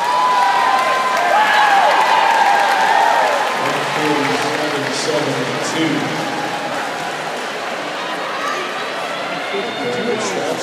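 A large crowd cheers and whistles loudly in a big echoing hall.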